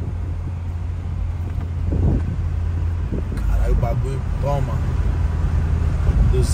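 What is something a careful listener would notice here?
A car engine hums and tyres rumble steadily on the road, heard from inside the car.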